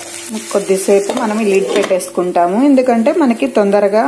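A glass lid clinks onto a frying pan.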